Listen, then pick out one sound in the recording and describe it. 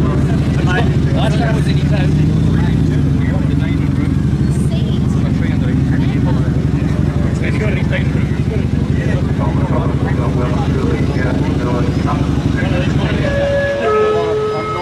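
A motorcycle engine idles close by with a deep, steady rumble.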